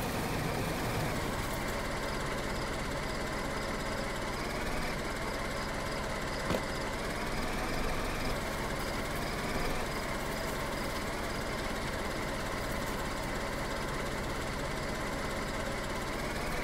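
A car engine idles steadily.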